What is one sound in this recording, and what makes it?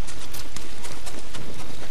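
Footsteps splash quickly across wet ground.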